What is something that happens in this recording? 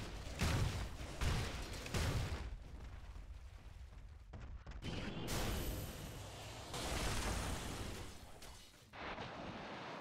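Magic blasts and weapon hits crash in a video game fight.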